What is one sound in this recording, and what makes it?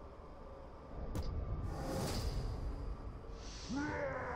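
A magical beam of energy whooshes loudly.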